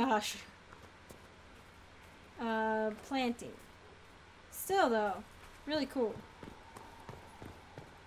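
Footsteps run over grass and stone.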